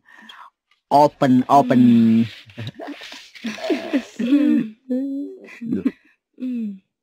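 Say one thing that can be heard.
Young women talk and laugh together.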